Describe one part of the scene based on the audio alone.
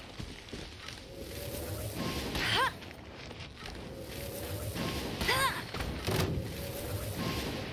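Fiery blasts whoosh and burst.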